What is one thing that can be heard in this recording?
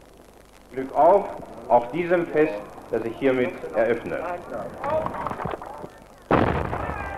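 An elderly man speaks formally into a microphone, heard through a loudspeaker outdoors.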